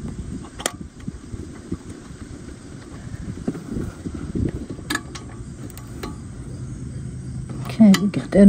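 A small metal clip clicks as fingers work it loose.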